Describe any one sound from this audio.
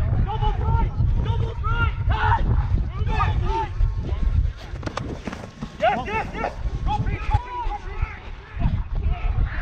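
Young men shout and call out to each other nearby.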